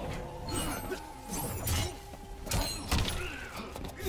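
A metal blade swishes and clangs.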